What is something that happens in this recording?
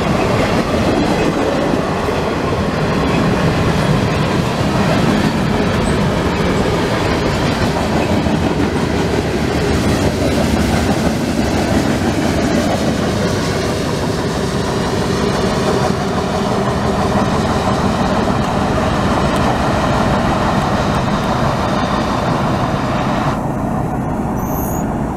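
A freight train rumbles loudly past close by, then fades into the distance.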